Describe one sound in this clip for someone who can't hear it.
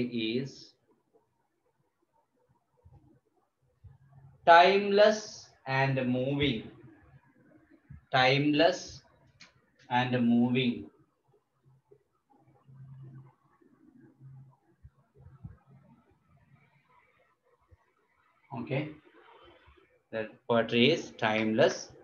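A man speaks calmly and close by, pausing between phrases.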